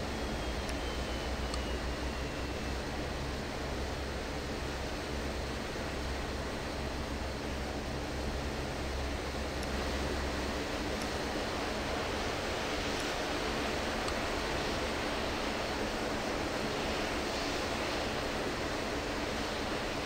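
Aircraft engines hum steadily.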